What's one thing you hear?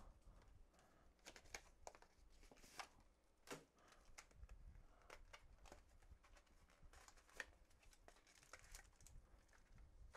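Cardboard taps and rustles as a box is handled.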